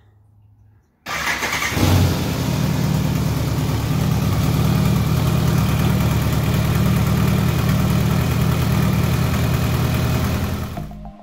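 A motorcycle engine starts and idles with a loud, steady rumble.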